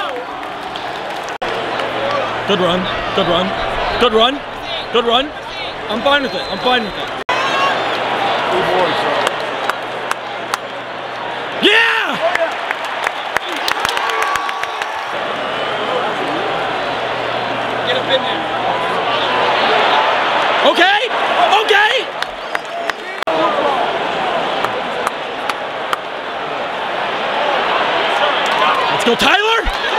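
A large stadium crowd roars and cheers throughout.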